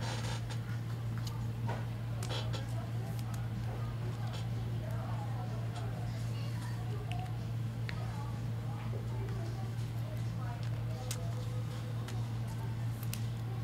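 Plastic card sleeves crinkle and click in hands.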